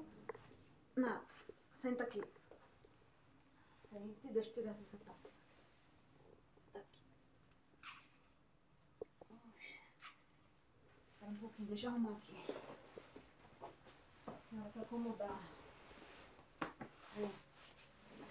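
Two women talk quietly close by.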